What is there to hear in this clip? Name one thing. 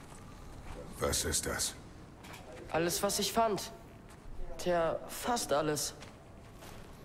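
A deep-voiced man speaks gruffly and calmly.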